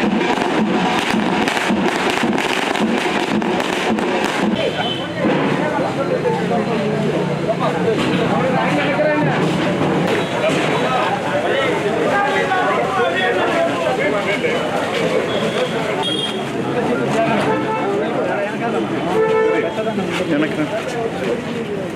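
A crowd of men talk and shout all at once nearby.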